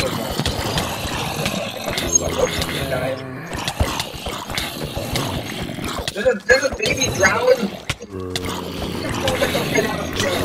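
Blocks of earth and stone crunch and crumble as they are dug out.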